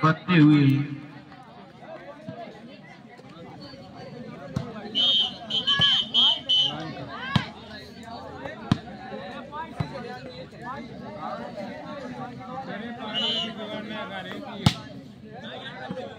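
Players and onlookers call out outdoors.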